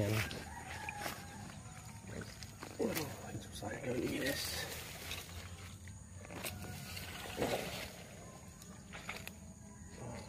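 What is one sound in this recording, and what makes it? Leaves and grass rustle close by as someone pushes through undergrowth.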